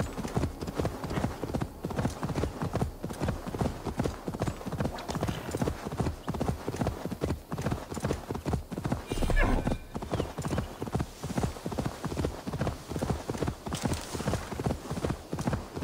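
Horse hooves thud in a fast, steady gallop over soft ground.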